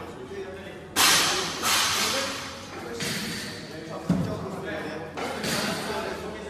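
Weight plates clank and rattle on a barbell as it is lifted and lowered.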